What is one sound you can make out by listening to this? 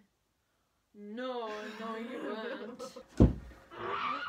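A young woman shrieks with laughter.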